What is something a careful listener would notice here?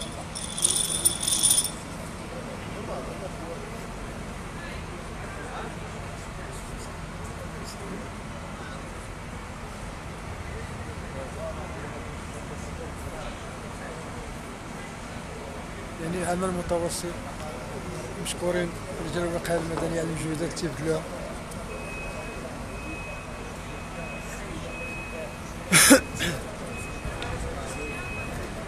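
Fire truck engines idle with a steady low rumble.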